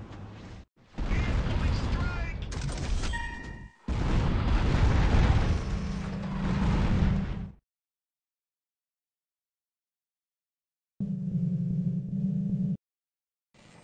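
Explosions boom and rumble in bursts.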